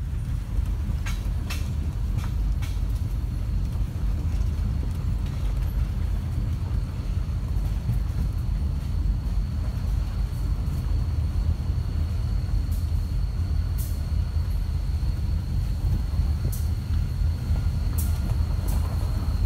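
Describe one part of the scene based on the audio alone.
Train wheels clank and squeal on the rails.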